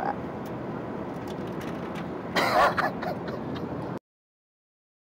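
A low, steady drone of an aircraft cabin fills the background.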